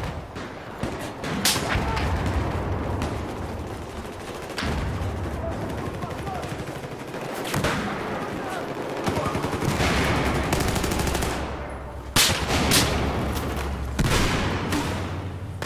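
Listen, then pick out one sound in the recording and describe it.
Distant gunfire and explosions rumble all around.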